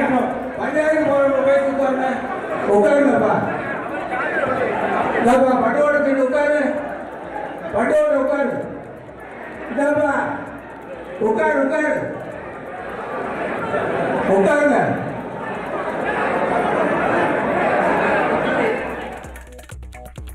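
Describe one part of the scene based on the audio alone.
A crowd of men shout and argue loudly.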